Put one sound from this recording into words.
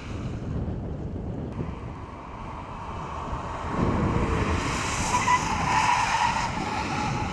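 A car engine roars.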